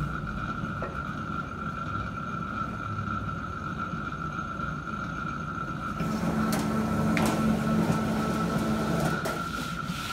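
A thin metal sheet wobbles and rumbles.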